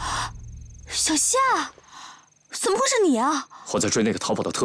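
A young woman speaks in surprise, close by.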